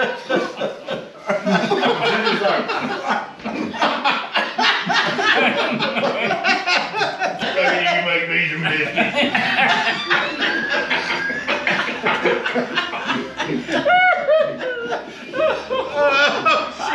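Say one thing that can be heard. Several older men talk and joke loudly together close by.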